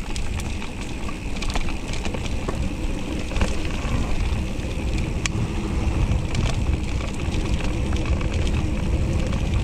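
Wind rumbles against the rider outdoors.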